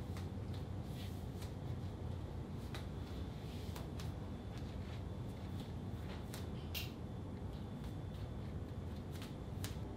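A woman's footsteps pad on a tiled floor.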